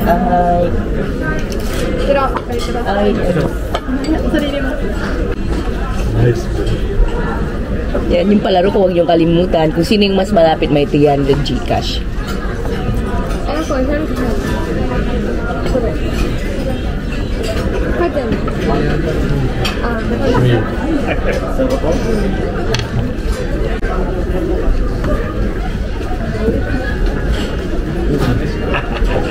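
A man talks casually across a table.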